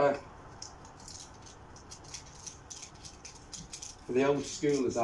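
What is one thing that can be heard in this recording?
Plastic packaging crinkles and rustles in someone's hands.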